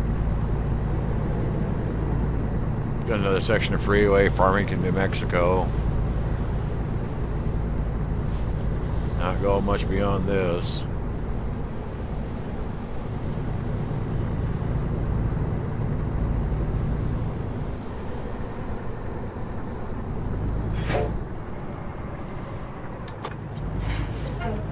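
A truck engine drones steadily as it drives along a highway.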